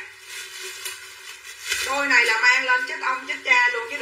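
A plastic bag crinkles as it is handled.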